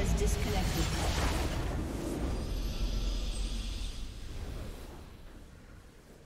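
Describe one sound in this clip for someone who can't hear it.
A triumphant fanfare swells and then fades.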